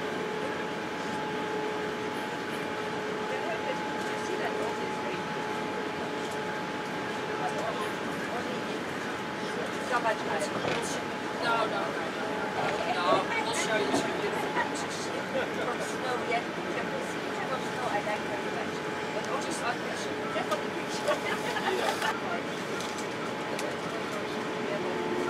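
A jet engine roars steadily inside an airliner cabin.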